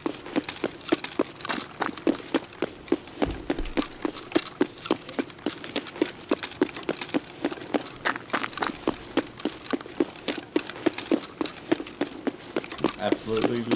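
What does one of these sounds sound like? Quick footsteps run over paving stones at a steady pace.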